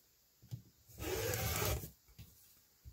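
A rotary cutter slices through fabric.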